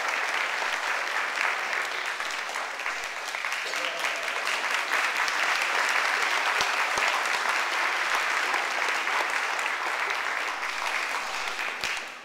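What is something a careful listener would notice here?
A children's choir sings together in an echoing hall.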